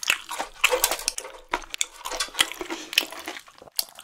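Chopsticks click against a grill.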